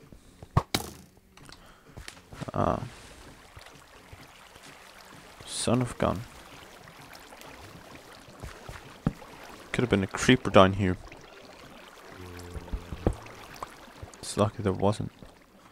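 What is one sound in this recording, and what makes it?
Water pours and splashes steadily nearby.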